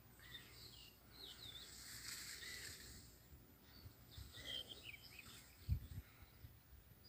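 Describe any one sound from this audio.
Wind rustles through reeds and buffets the microphone outdoors.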